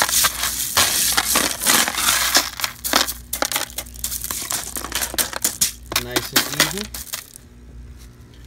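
Small pebbles rattle and clatter as a hand stirs them.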